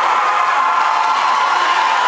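A drum kit plays on a stage.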